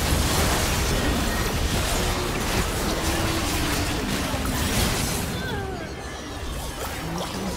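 Game spell effects crackle and burst in a busy fight.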